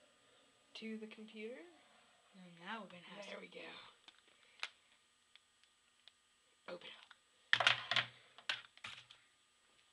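A slider phone clicks open and shut in a hand.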